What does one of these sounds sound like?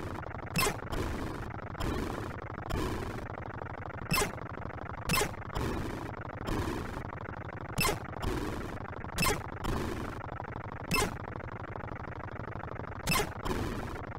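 Sharp electronic shots fire repeatedly.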